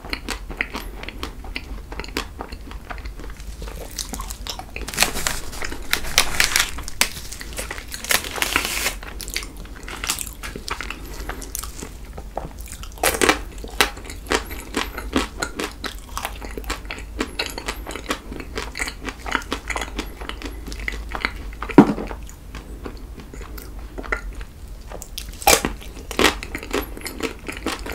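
A man chews wet food close to a microphone, with smacking sounds.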